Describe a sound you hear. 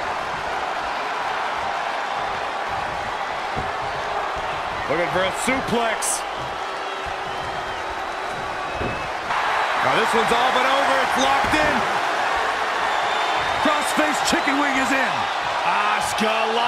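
A large crowd cheers and roars in a big arena, growing louder partway through.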